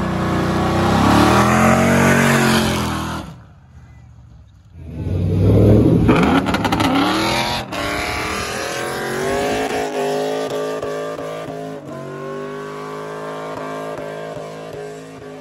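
Tyres squeal as they spin on the road.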